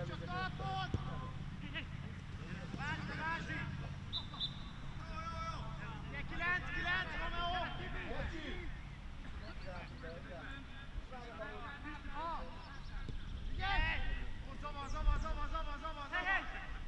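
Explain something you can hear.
Young men shout to each other across an outdoor field.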